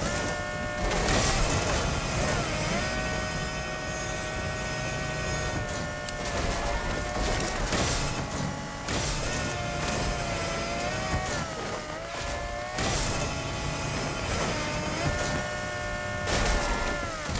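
A car engine drones steadily, its pitch dipping and rising now and then.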